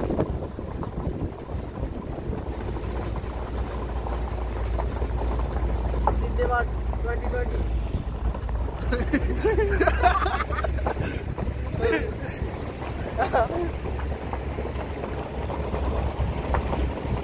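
Wind rumbles against a phone's microphone outdoors.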